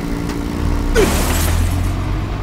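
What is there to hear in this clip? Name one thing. A car strikes a person with a sudden thud.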